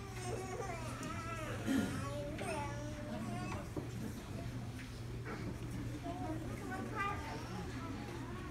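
A crowd murmurs quietly in the background.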